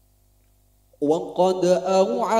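A group of young men sing together through loudspeakers.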